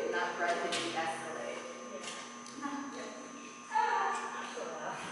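A woman talks encouragingly to a dog in an echoing hall.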